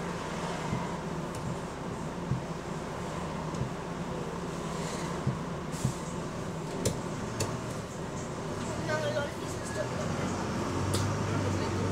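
The bus body rattles and knocks over bumps.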